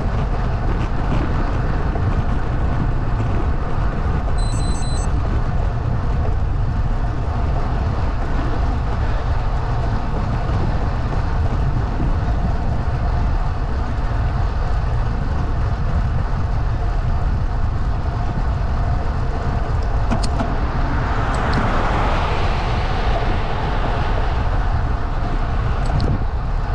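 Wind roars steadily against the microphone outdoors.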